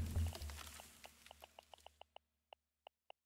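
Soft clicks tick in quick succession, then more slowly.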